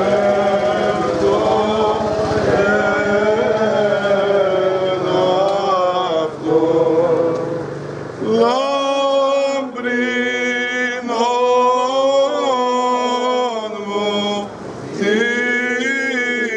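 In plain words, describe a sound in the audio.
A group of men chant together in a slow, sustained melody.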